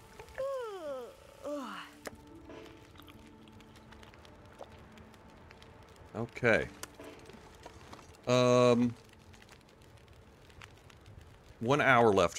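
A fire crackles softly in a stove.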